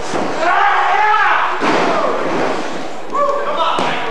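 A body thuds heavily onto a ring mat.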